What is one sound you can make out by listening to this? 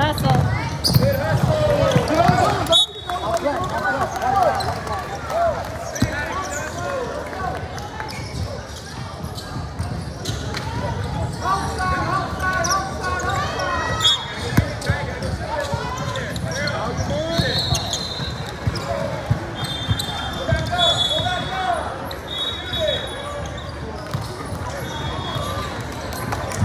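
Young girls shout and call out across a large echoing gym.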